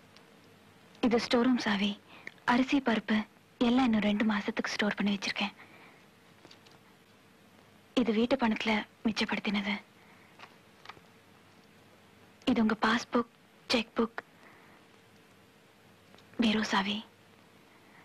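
A young woman answers in short, hesitant phrases.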